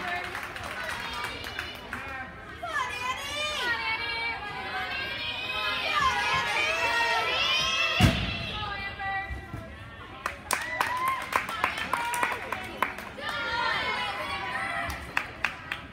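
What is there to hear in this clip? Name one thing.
Feet thud on a wooden balance beam.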